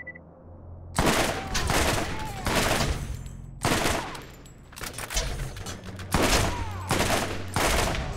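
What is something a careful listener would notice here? A rifle fires loud rapid bursts of gunshots.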